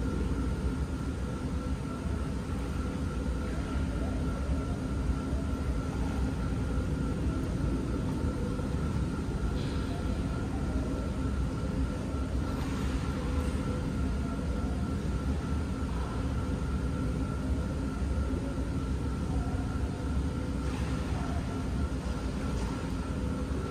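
Water splashes softly as swimmers move through a pool.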